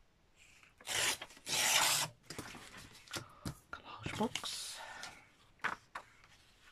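Paper rustles and slides across a hard surface.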